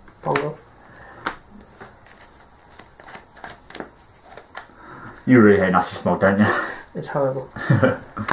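Playing cards are shuffled by hand with soft flicking clicks.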